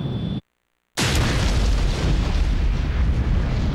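A large explosion bursts with a deep boom.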